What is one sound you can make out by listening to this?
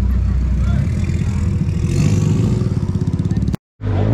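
A small motorcycle rides slowly away.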